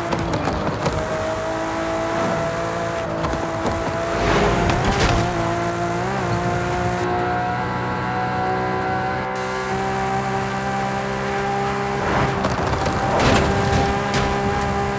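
A racing car engine roars steadily at high speed, its pitch slowly rising.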